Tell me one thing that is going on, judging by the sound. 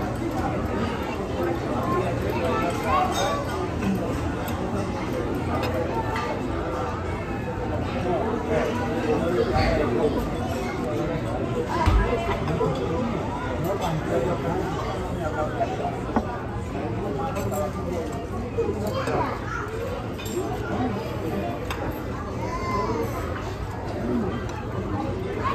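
A crowd of diners chatters all around in a busy, echoing room.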